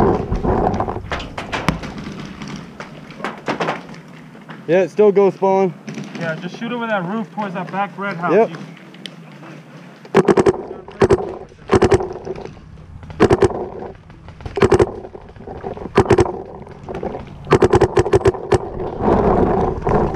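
A paintball marker fires in quick bursts of sharp pops close by.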